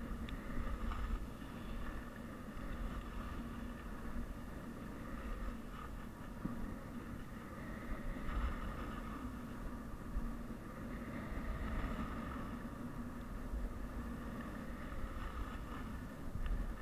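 Wind rumbles against a microphone.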